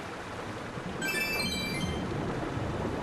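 A bright, tinkling game chime rings out once.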